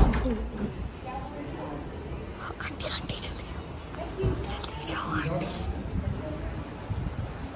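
Several people talk nearby indoors.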